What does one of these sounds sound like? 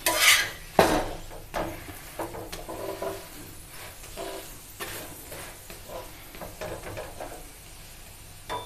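A metal spatula scrapes and taps against a hot griddle.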